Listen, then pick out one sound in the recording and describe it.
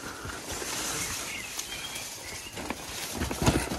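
Leaves and branches brush against a passing bicycle.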